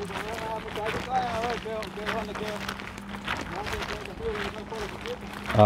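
Footsteps crunch on a dirt road.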